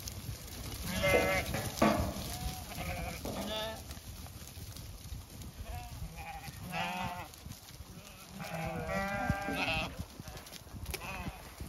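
A flock of sheep bleats.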